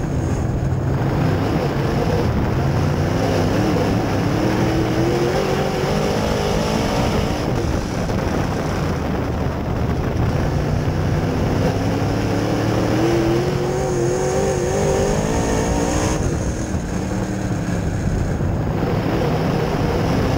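A race car engine roars loudly from close by, revving up and down.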